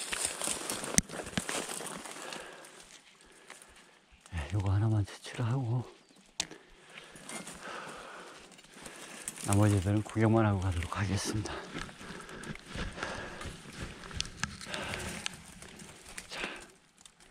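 Twigs and branches rustle and creak as they are handled close by.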